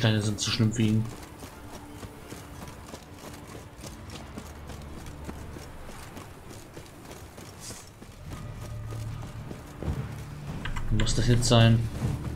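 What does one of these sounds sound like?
Footsteps run over dirt and stone.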